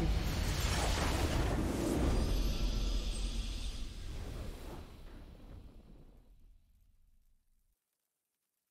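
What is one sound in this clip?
A triumphant game victory fanfare plays loudly and fades away.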